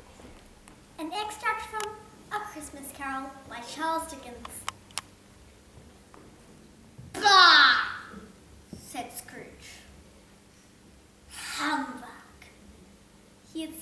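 A young girl recites expressively on an echoing stage.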